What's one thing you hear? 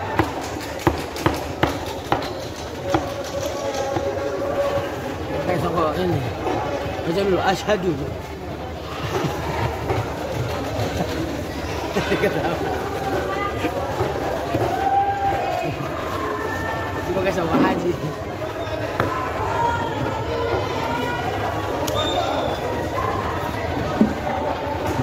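A knife chops sharply on a wooden block.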